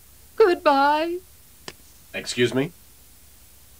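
A high-pitched cartoonish voice squeals and laughs close by.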